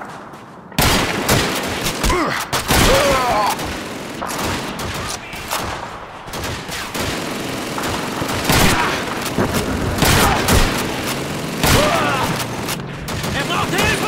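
Explosions boom and echo.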